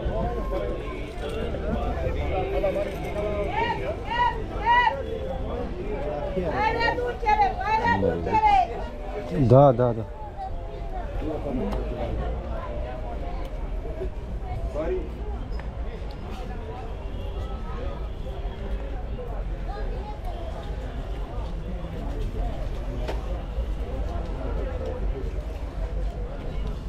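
A low murmur of outdoor chatter goes on in the background.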